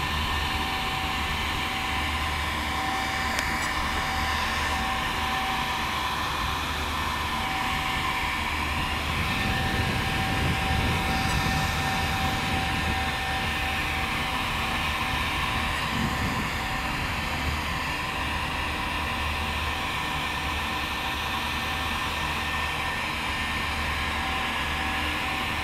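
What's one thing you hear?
Small cooling fans on an electric model truck whir.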